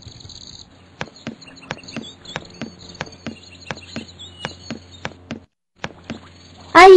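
Quick footsteps patter as a child runs.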